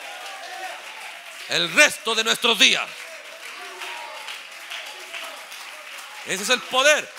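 A large crowd of young women sings and prays aloud together.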